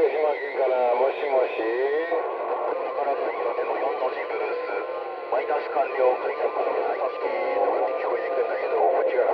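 A radio receiver crackles with a noisy, warbling signal through its loudspeaker.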